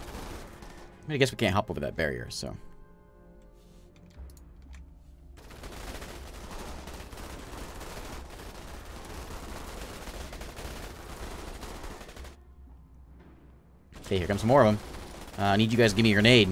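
A man speaks with animation close into a microphone.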